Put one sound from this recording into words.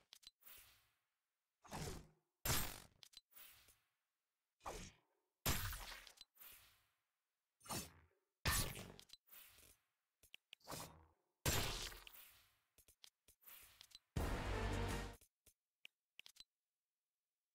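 Short electronic sound effects play in quick bursts, one after another.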